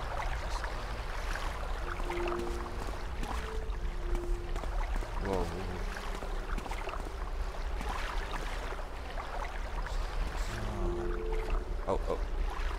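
Footsteps tread steadily on hard stone.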